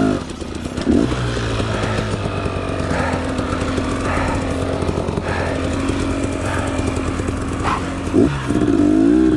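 A dirt bike engine idles with a steady low rumble.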